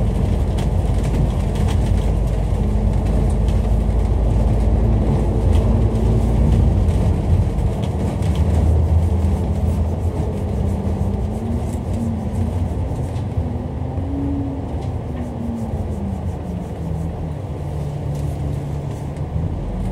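A vehicle's engine hums steadily up close as it drives along a road.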